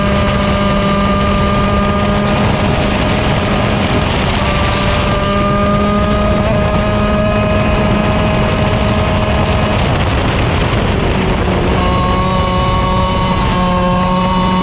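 Other kart engines whine nearby.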